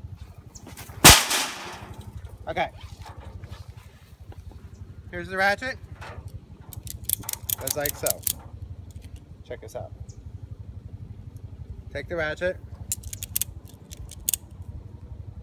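A ratchet strap clicks as it is cranked.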